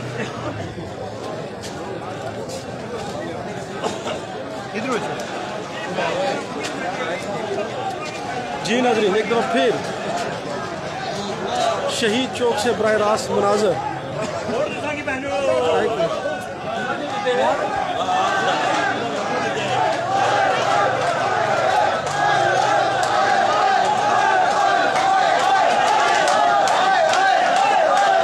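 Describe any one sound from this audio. A crowd of men talks and shouts outdoors.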